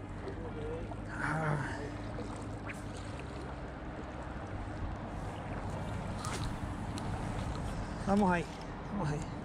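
A fishing reel clicks softly as it is cranked.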